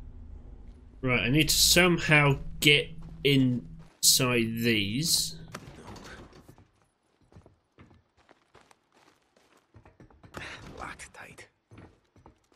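A young man talks with animation into a headset microphone, close by.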